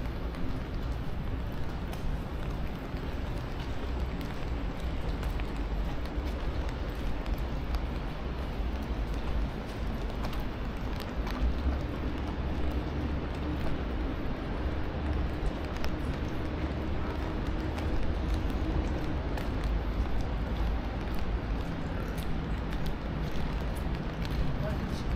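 Footsteps tap on wet pavement close by.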